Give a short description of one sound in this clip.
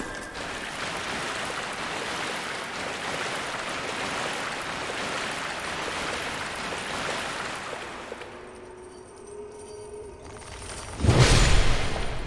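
Armoured footsteps splash through shallow water.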